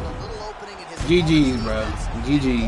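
A punch lands with a heavy thud.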